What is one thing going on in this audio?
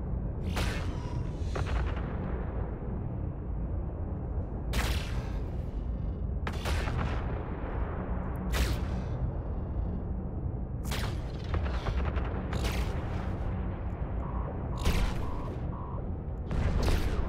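Laser weapons fire in sharp bursts.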